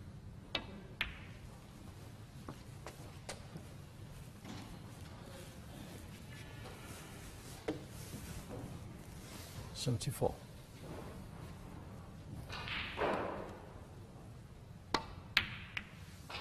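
Snooker balls click sharply together.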